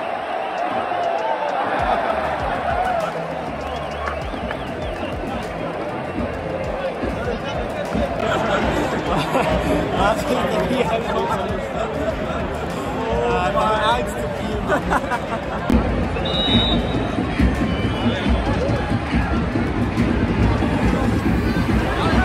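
A large stadium crowd roars and chants throughout.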